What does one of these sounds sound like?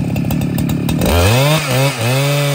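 A chainsaw engine revs up and down.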